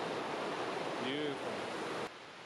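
A man speaks a brief word close by.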